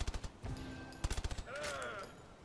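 Rapid gunshots ring out close by.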